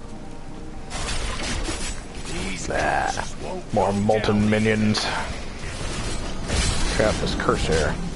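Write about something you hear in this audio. Spells burst and crackle with fire.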